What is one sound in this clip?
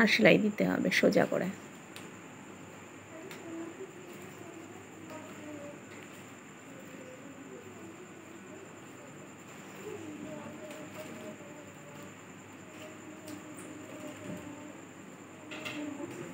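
Cloth rustles softly as hands handle it.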